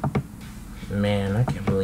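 A young man speaks briefly and calmly close to a microphone.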